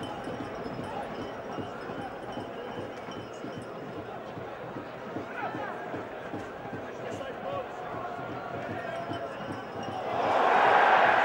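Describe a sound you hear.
A large stadium crowd murmurs in the open air.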